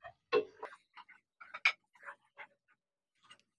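A wooden spoon scrapes and stirs thick food in a metal pan.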